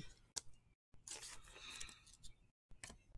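A trading card slides out of a plastic sleeve.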